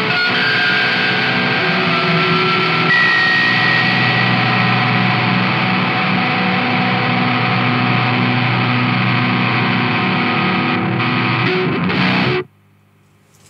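An electric guitar plays loud fuzzy distorted chords and notes.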